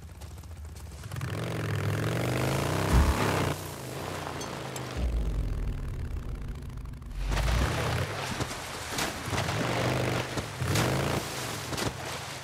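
A motorcycle engine revs and roars as the bike rides off.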